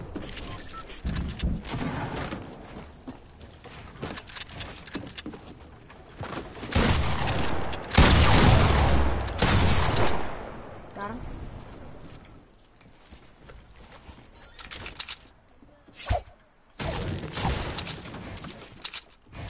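Wooden walls and ramps are built with quick knocking clatters.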